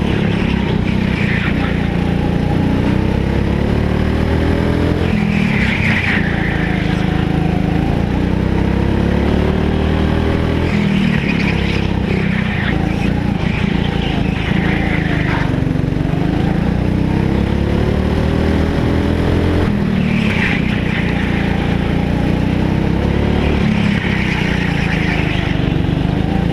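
Tyres squeal on a smooth floor in the corners.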